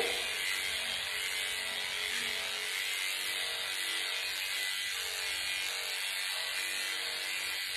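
Electric clippers buzz steadily while trimming a cat's fur.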